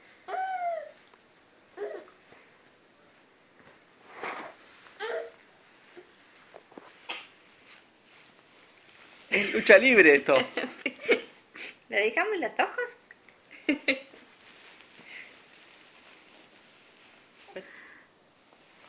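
Babies babble and squeal close by.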